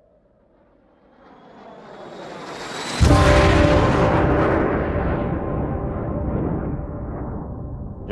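A jet roars past close by with a rising whoosh.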